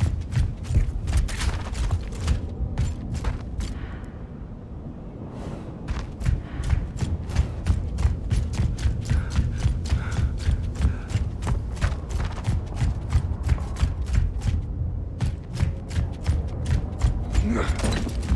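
Heavy armoured footsteps thud and clank quickly on stone.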